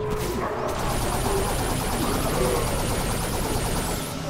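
Energy beams crackle and hum in a video game.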